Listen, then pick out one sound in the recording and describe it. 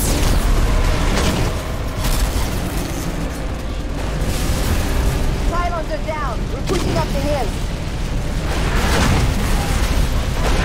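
Laser gunfire zips and crackles in bursts.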